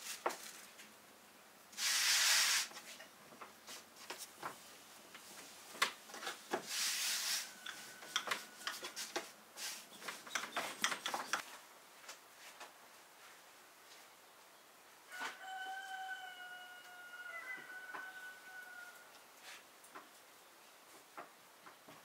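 Hands knead and press dough on a wooden board with soft thumps.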